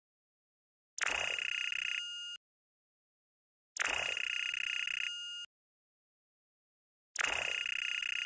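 Rapid electronic beeps chatter in bursts.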